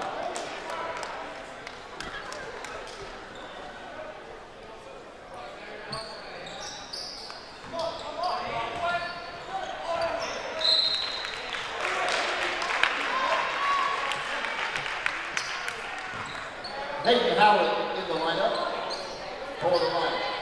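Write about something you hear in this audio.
Spectators shout and cheer in an echoing gym.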